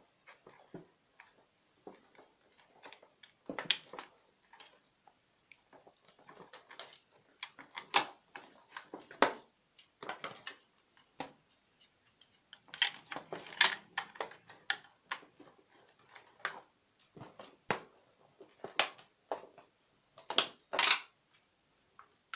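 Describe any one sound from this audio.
Plastic parts of a toy click and clack as hands handle them.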